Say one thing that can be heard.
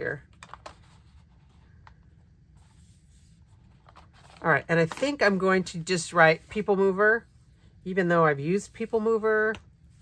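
Paper rustles and crinkles softly as sheets are handled.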